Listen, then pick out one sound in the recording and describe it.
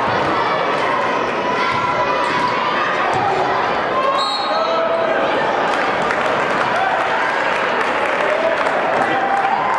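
A crowd chatters and cheers throughout a large echoing gym.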